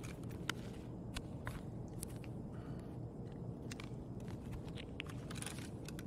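Footsteps scuff on a gritty concrete floor.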